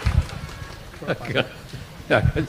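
An elderly man laughs and speaks into a microphone.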